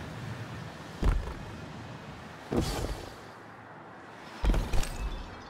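Heavy footfalls thud as a figure lands after jumping down.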